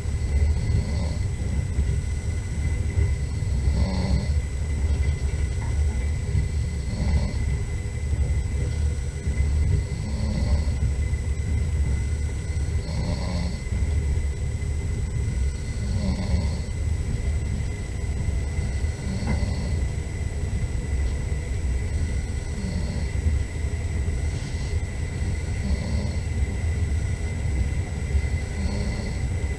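A car engine rumbles steadily from inside a moving vehicle.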